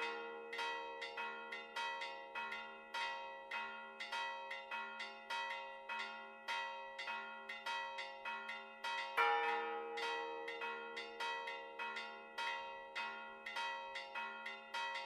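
Church bells ring in a rapid, steady peal, each stroke ringing on.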